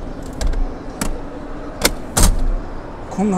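A car seat latch clicks and the seat thuds into place.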